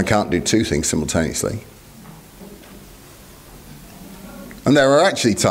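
A middle-aged man speaks calmly into a microphone, with a pause.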